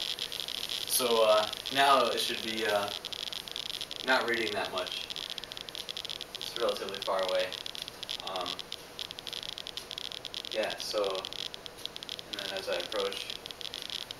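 A young man talks calmly from across a room.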